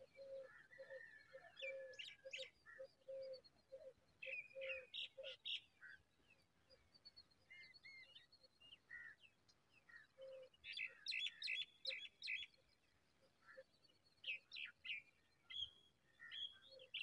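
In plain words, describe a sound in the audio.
A young bird chirps from its nest.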